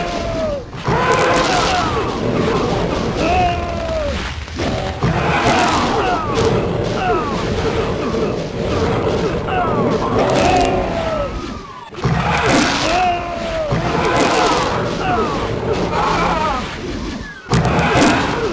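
Rockets explode with loud, booming blasts again and again.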